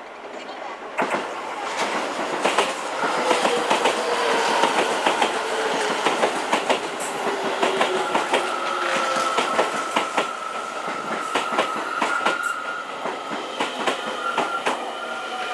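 A train passes close by on the next track with a loud rush.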